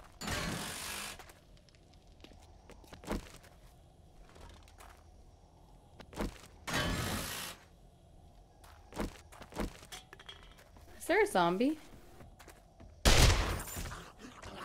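Footsteps crunch on loose gravel.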